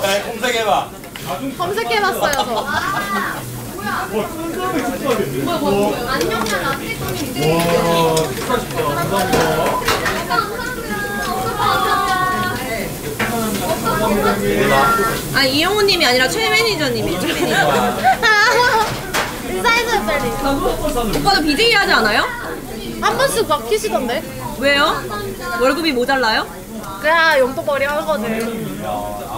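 Young women and men chat and laugh together around a table, close by.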